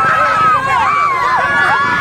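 A woman laughs and shouts close by.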